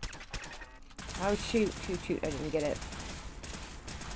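Laser guns fire with sharp zapping bursts.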